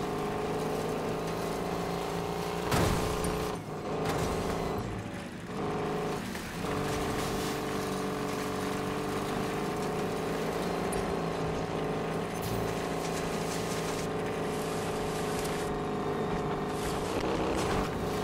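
An old truck's engine roars steadily at high revs.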